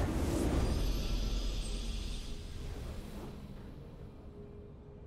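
A triumphant fanfare rings out loudly and then fades away.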